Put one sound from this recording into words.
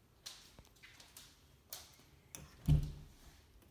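A door handle clicks.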